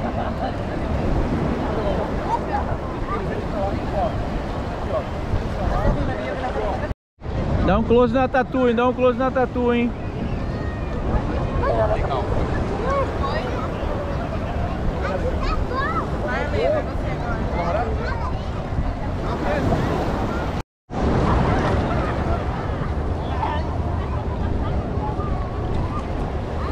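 Shallow water splashes around wading legs.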